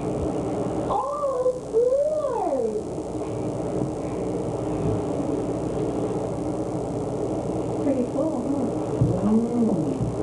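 A baby coos and squeals close by.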